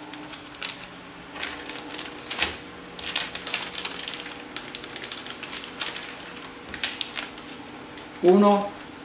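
Plastic packets crinkle and rustle in hands.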